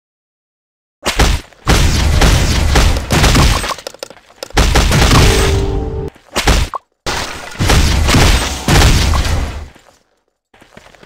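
Game battle sounds of blows and spells clash loudly.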